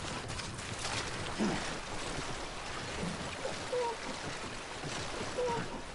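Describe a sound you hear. Water splashes around someone wading through a river.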